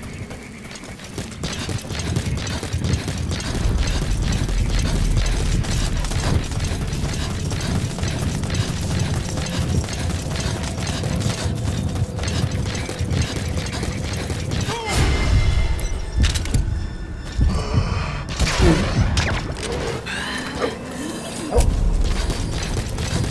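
Footsteps run quickly over dry, gravelly ground.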